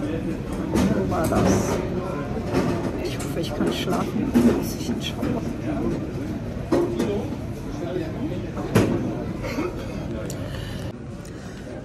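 A middle-aged woman talks calmly close to the microphone.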